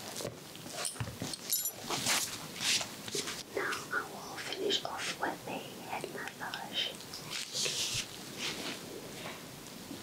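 Hands rustle and tap against fabric close by.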